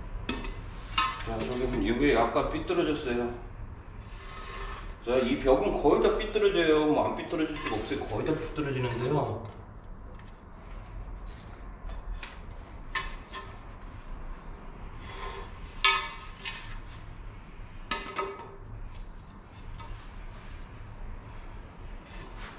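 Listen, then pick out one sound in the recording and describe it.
A ceramic tile clicks and taps as it is set down on the floor.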